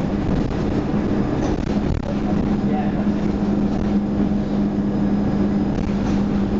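A bus body rattles and rumbles over the road.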